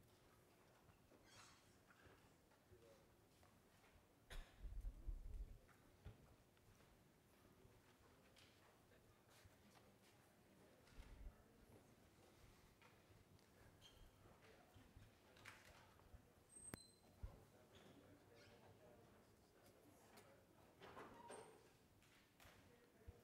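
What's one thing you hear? Footsteps walk across a hard floor in a large, echoing hall.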